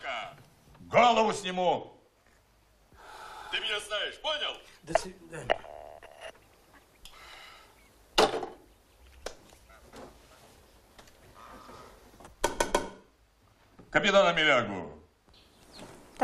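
A middle-aged man shouts angrily into a telephone.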